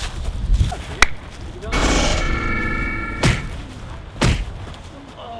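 Blows land with sharp slaps during a scuffle.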